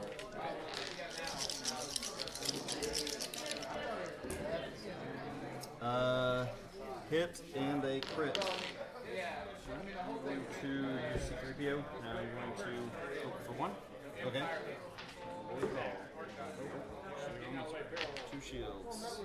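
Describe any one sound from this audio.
Men talk with each other nearby.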